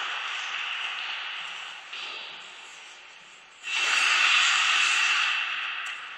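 Ice skates glide and scrape across the ice.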